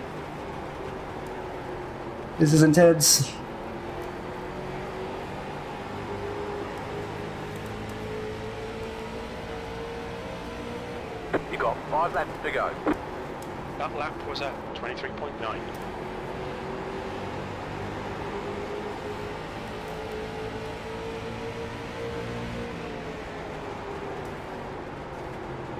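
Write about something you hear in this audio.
A race car engine drones steadily, rising and falling in pitch with the speed.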